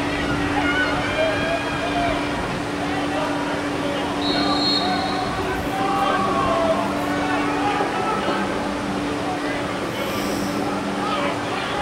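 Men talk in an open outdoor stadium.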